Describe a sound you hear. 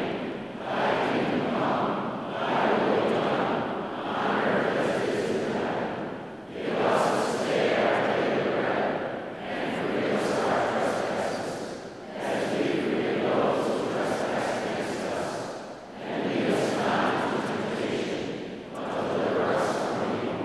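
A large crowd of men and women sings together in long phrases, echoing through a vast hall.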